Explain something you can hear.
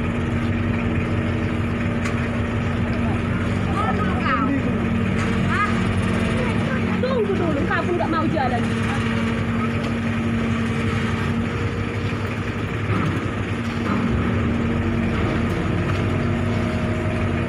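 A ship's engine hums steadily close by.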